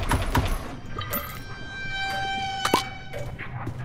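A bright chime rings as an item is picked up.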